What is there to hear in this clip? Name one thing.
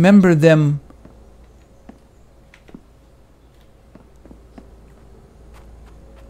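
Footsteps thud softly on a wooden walkway.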